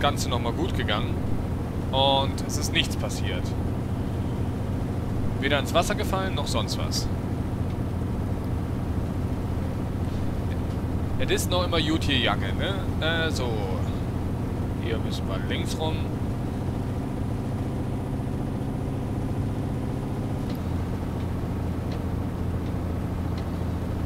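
A diesel truck engine drones while cruising on a motorway.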